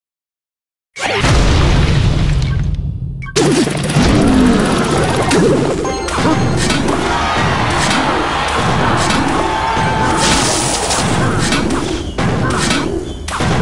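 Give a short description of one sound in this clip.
Cartoon battle sound effects clash and thud.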